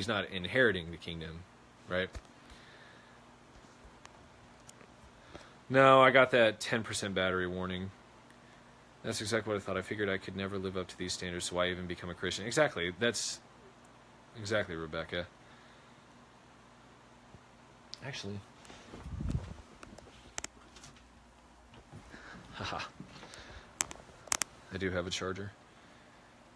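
A young man talks calmly into a phone microphone, close up, in short bursts with pauses.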